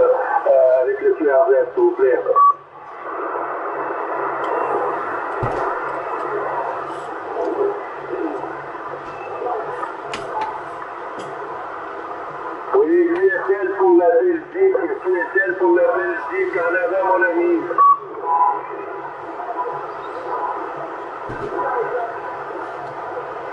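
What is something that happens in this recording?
Static hisses steadily from a radio receiver.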